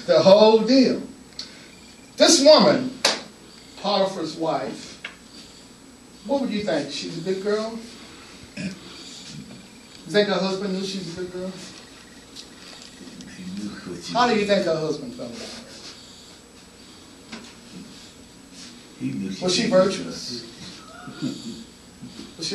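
A man speaks with animation, pausing between phrases.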